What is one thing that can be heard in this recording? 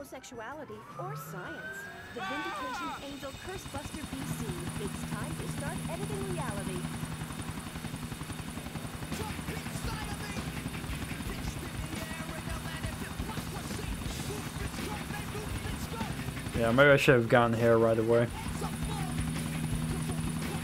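A helicopter engine hums and its rotor thrums steadily.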